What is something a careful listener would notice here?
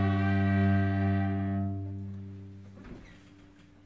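Violins and a cello hold a sustained final chord that slowly fades.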